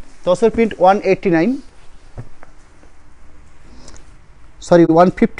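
Cloth flaps and rustles as it is shaken and folded.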